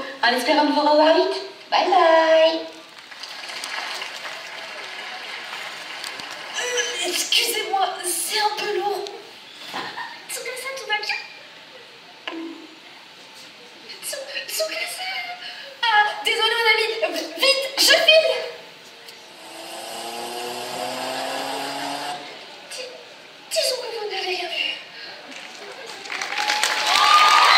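A young woman speaks dramatically through loudspeakers in a large echoing hall.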